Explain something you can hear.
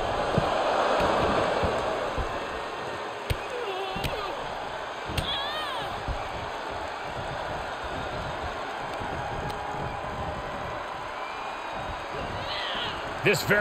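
A large arena crowd cheers and roars steadily throughout.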